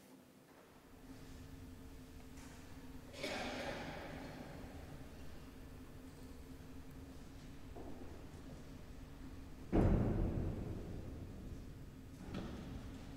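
A pipe organ plays soft, sustained notes.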